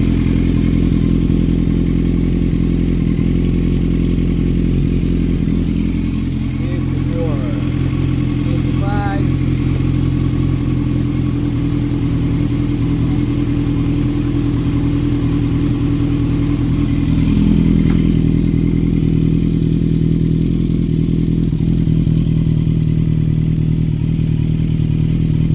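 An inline-four sport motorcycle idles through an aftermarket slip-on exhaust with a deep, steady burble.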